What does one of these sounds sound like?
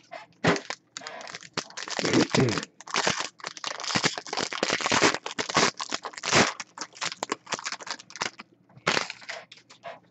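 Plastic wrapping crinkles as hands tear it open.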